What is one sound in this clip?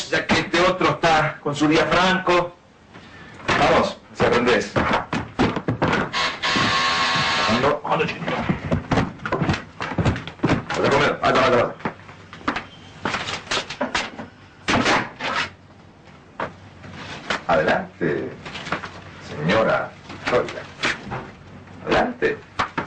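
A man speaks with agitation.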